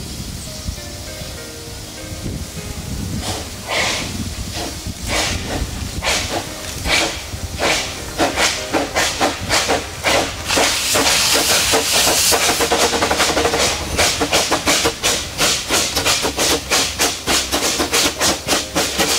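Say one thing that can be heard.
A train rumbles along the rails.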